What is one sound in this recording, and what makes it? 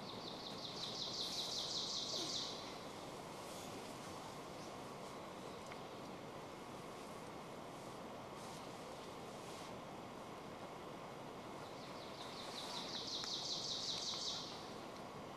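Sleeping bags rustle as a child shifts.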